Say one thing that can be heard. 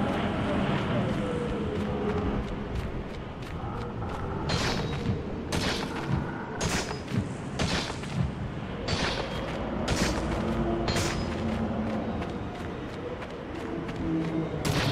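Strong wind roars in gusts, whipping up blowing sand.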